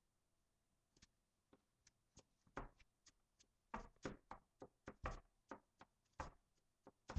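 A stuffed toy thumps softly against a table, over and over.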